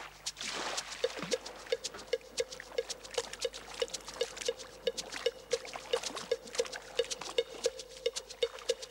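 A fish flaps and knocks quickly and steadily against wood.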